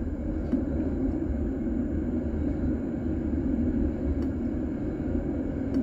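A tram rumbles steadily along its rails.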